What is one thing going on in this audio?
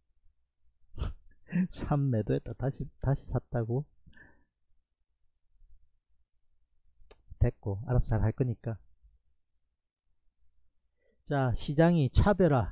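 A man talks calmly into a microphone, in short bursts with pauses.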